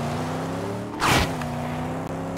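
A loud crash bursts out as the car hits something.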